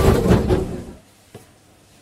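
Objects rustle and knock inside a cupboard.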